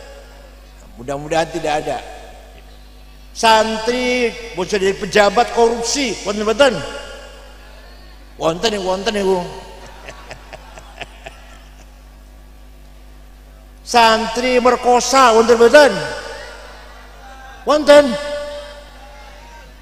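An elderly man speaks slowly and deliberately into a microphone, with long pauses.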